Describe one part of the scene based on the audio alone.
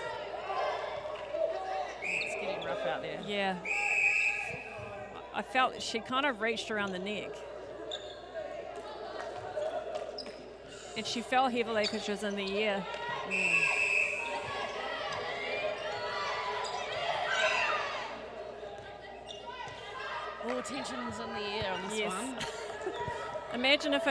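Young women call out to each other loudly in a large echoing hall.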